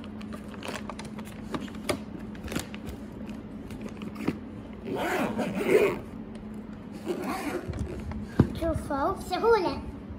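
A fabric lunch bag rustles as hands handle it.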